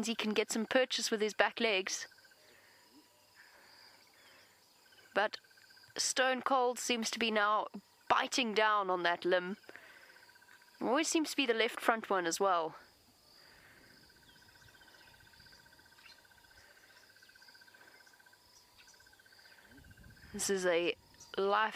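A frog croaks loudly in short bursts close by.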